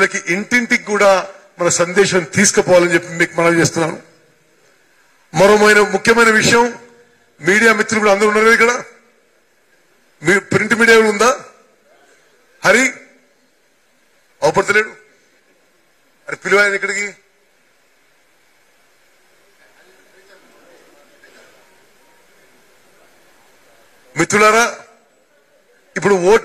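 A middle-aged man speaks forcefully into a microphone over loudspeakers, with pauses between phrases.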